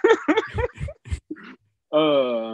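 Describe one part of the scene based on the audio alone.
A man laughs into a microphone over an online call.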